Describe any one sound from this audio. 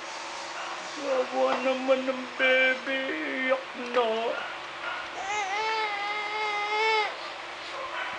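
A toy on a baby walker plays a tinny electronic tune.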